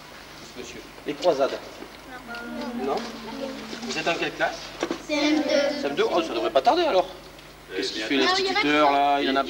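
Children talk and call out close by.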